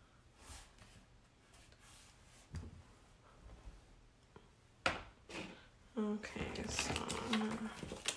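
Paper rustles and slides.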